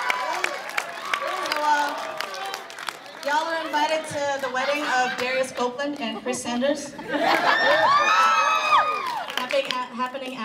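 A young woman speaks with animation through a microphone in a large hall.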